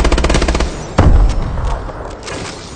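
A weapon blast booms loudly.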